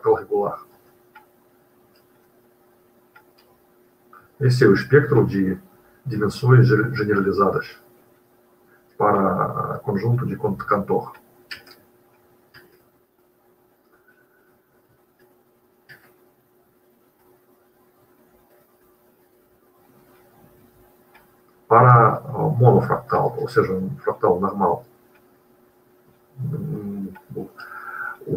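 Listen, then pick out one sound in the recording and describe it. A man lectures calmly over an online call, with pauses.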